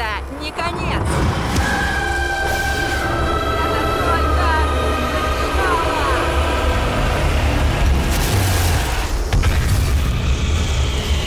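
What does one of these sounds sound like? An energy beam roars and crackles with a deep, steady rumble.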